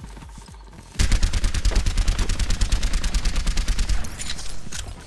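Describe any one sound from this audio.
A rapid-fire gun shoots in a fast, loud burst.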